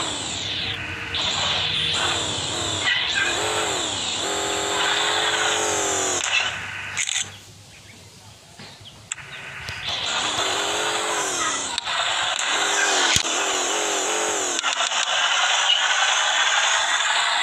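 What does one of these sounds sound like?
A small engine revs up and down.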